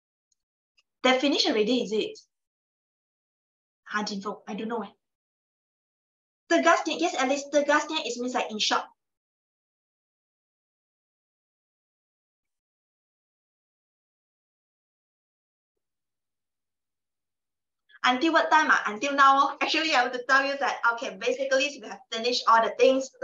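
A young woman speaks calmly into a microphone, in bursts with long pauses.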